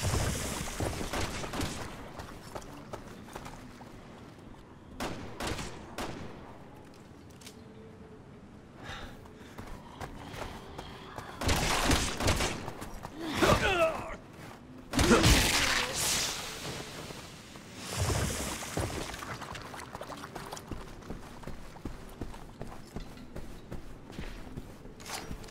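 Footsteps crunch on grass and gravel.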